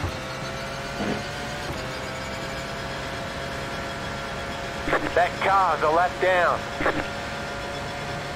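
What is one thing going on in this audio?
A race car engine hums steadily at high speed.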